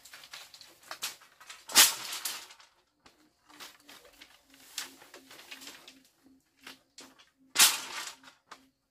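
Dry bamboo poles clatter and rattle as they are pulled from a pile.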